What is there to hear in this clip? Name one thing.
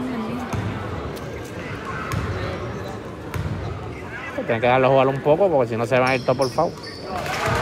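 A ball bounces on a wooden court.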